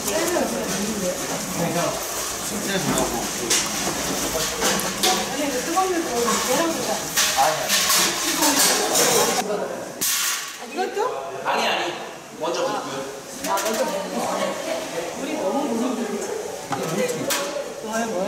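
Several adults chat and talk over one another nearby.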